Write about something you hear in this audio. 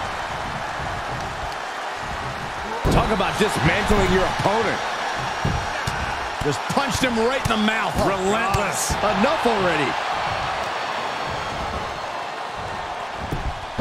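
A large crowd cheers and roars steadily throughout.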